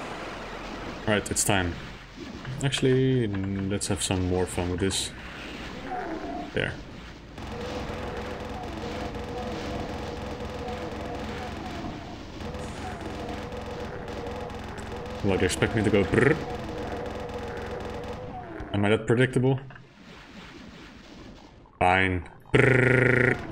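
Monsters growl and roar.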